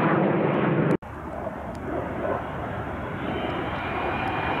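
A jet plane whines and rumbles as it approaches from a distance.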